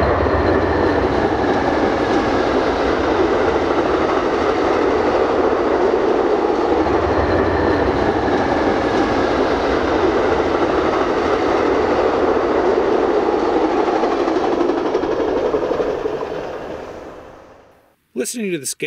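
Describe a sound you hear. A train's wheels clatter over the rails.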